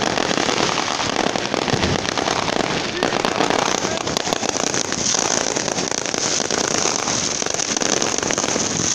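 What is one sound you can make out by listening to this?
Fireworks bang loudly as they burst.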